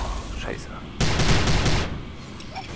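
A heavy gun fires a loud burst of shots.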